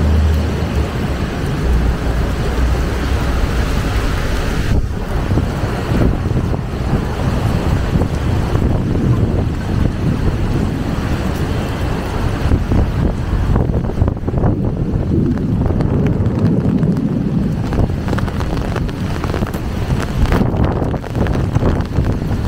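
Strong wind blows and buffets the microphone outdoors.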